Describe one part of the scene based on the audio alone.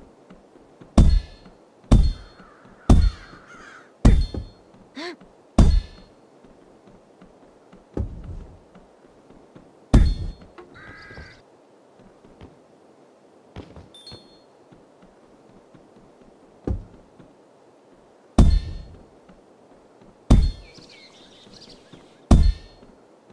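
Heavy thumps of blows landing on a punching bag come again and again.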